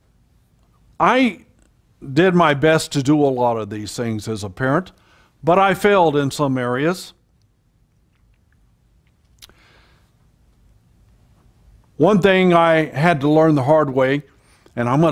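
An elderly man speaks with emphasis into a microphone, in short bursts with pauses.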